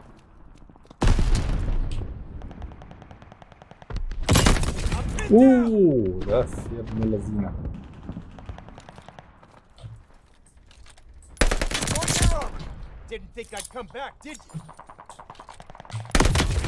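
Gunshots crack in bursts.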